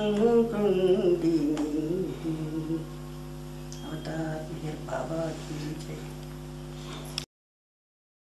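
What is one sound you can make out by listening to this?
An elderly woman speaks softly close by.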